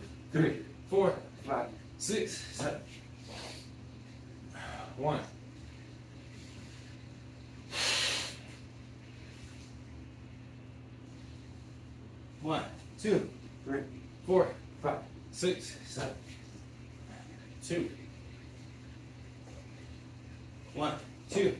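Hands and feet thump on a rubber floor in quick bursts.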